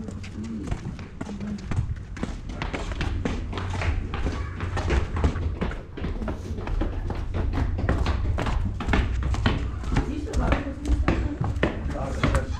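Footsteps scuff on concrete and thump up wooden stairs.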